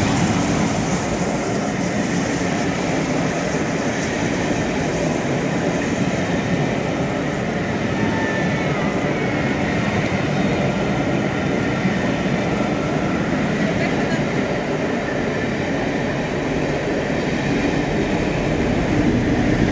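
Passenger coaches rumble past with wheels clattering over rail joints.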